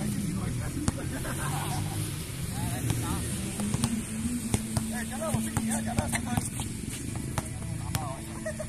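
A basketball bounces on a hard outdoor court.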